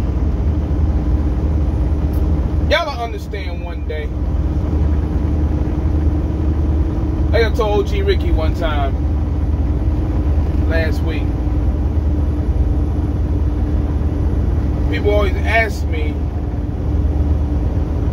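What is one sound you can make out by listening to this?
A steady low engine rumble drones.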